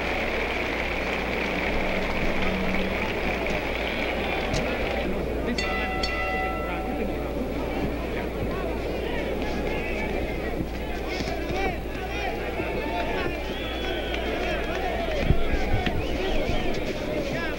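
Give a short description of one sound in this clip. A large crowd murmurs and cheers in a big echoing hall.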